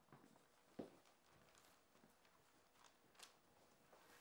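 Footsteps walk across a floor.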